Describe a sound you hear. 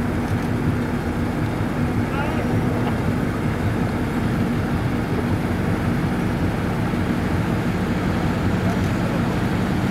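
Wind blows hard across open water.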